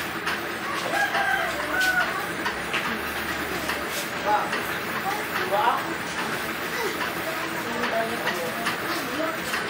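A middle-aged woman speaks casually nearby.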